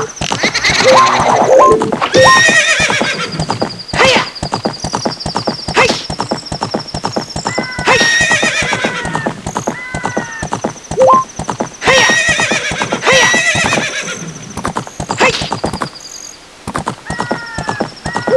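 Hooves gallop quickly and steadily.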